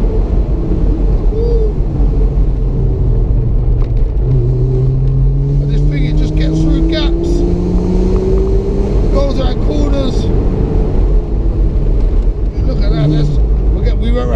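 A car engine hums steadily and rises in pitch as it speeds up.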